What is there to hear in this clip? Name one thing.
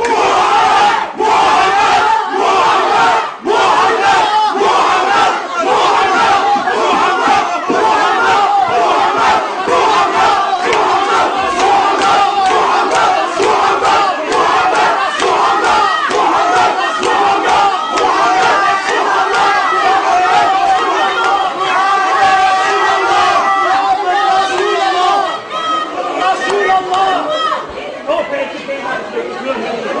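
A large crowd of men chants loudly and rhythmically in an echoing hall.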